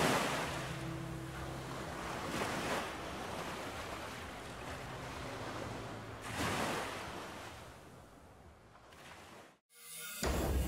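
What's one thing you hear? Waves wash gently against a rocky shore.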